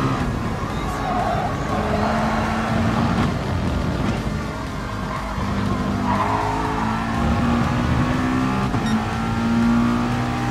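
A racing car's engine roars and revs up and down through the gears.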